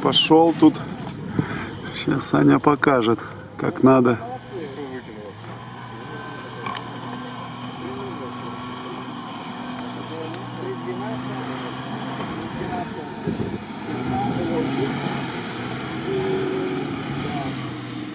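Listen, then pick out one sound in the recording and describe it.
An off-road vehicle's engine rumbles and revs as it churns through soft sand.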